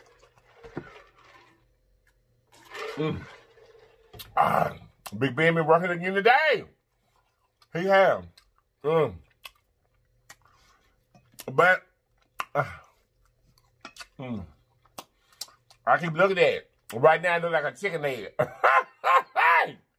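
A man chews and smacks his lips loudly.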